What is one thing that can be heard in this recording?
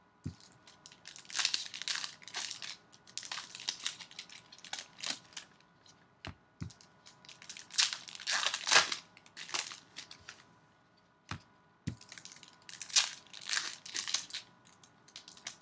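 Plastic wrappers crinkle and rustle as hands tear them open.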